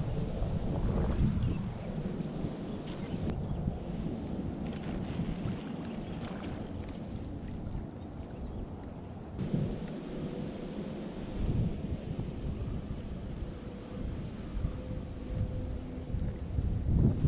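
Wind blows across open water, rumbling steadily.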